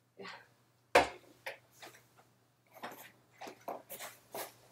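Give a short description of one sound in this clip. A man knocks a cardboard box about with a thud.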